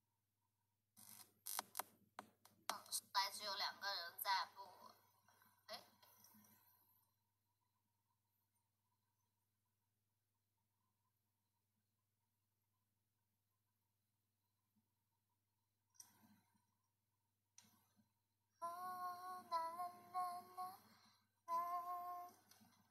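A young woman sings and talks softly close to a microphone.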